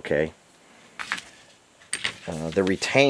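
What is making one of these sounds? Small metal parts clink lightly together.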